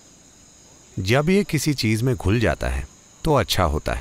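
An elderly man speaks calmly and deliberately into a close microphone.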